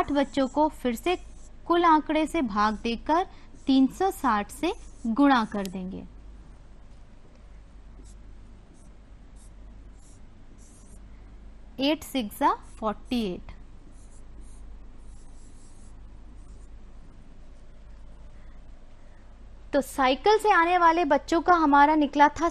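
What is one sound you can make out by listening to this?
A woman speaks calmly and clearly into a microphone, explaining step by step, with pauses.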